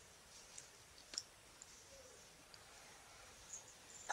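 Bedding rustles softly as a baby shifts about.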